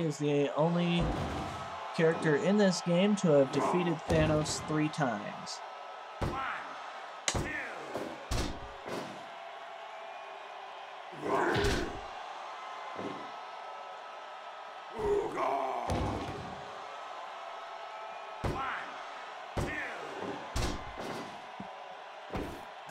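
Heavy thuds and slams sound repeatedly.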